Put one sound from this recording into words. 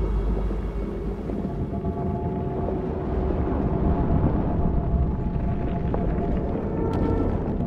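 Electric energy crackles and sizzles.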